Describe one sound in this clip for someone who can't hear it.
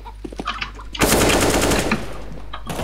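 Rapid rifle shots fire in a quick burst.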